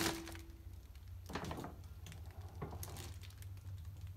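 A bin lid shuts with a thud.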